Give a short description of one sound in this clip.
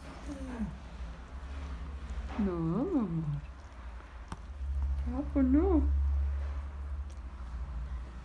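A dog licks its leg.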